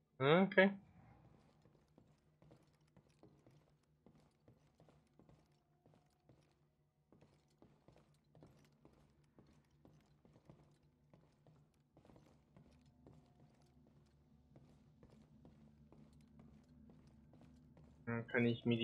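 Footsteps tap along a hard metal floor.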